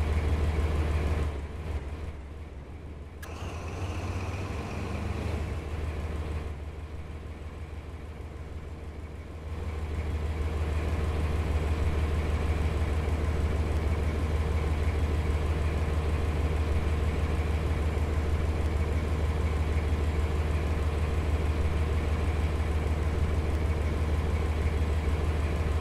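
A train engine hums with a low, steady drone.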